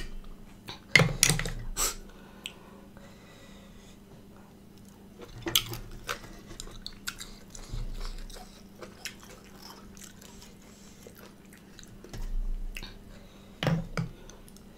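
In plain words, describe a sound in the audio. Chopsticks clink against a plate.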